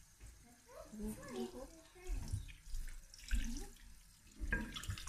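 Hands rub and squelch wet raw meat.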